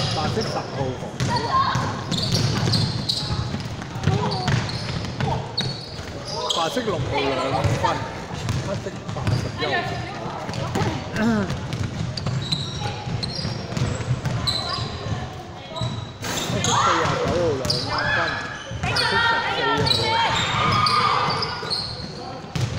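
Young players shout to each other across a large echoing hall.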